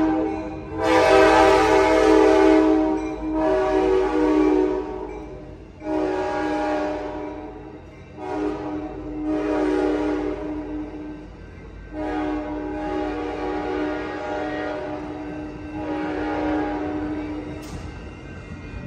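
A passenger train rumbles past on the tracks.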